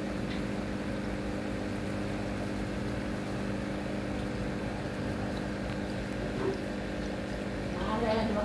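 Air bubbles gurgle and fizz steadily in water.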